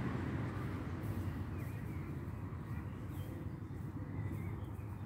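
Wind blows and rumbles steadily outdoors.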